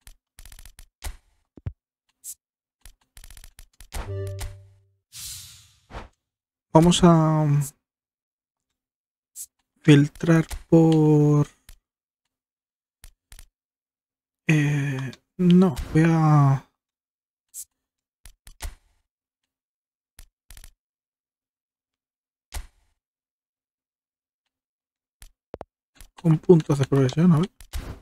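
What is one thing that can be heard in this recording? Short menu clicks tick as selections change.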